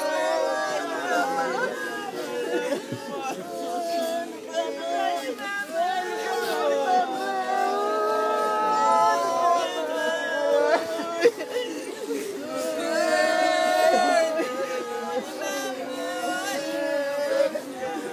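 A crowd of men and women sings a slow mournful song together outdoors.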